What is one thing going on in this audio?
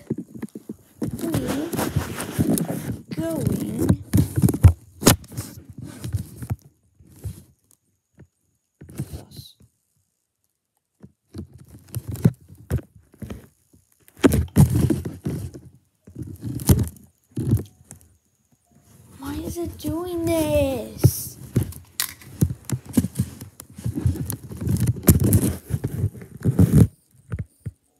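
A young girl talks with animation close to a phone microphone.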